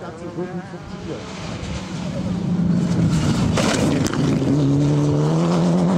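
A second rally car engine roars and revs as it approaches.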